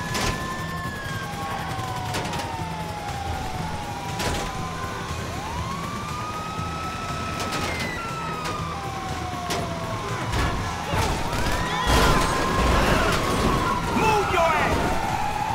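Police sirens wail and glide up and down nearby.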